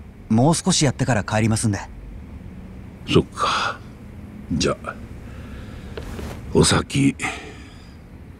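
An elderly man speaks calmly up close.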